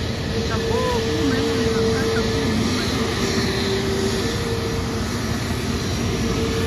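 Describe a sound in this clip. A jet airliner's engines roar and whine steadily as it taxis nearby.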